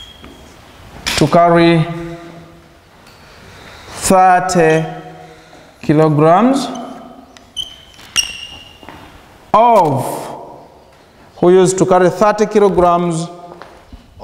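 A young man speaks loudly and slowly in bursts, in an echoing room.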